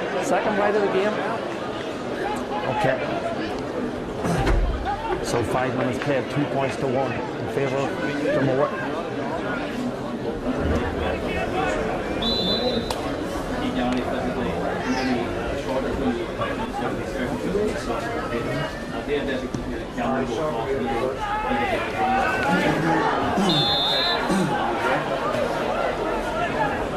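A crowd murmurs and cheers in an open stadium.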